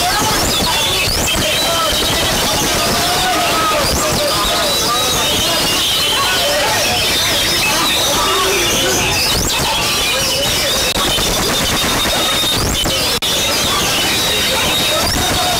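A bird chirps and whistles close by.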